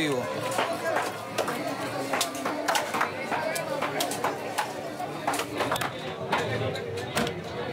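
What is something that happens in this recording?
A knife chops fish on a wooden board with sharp knocks.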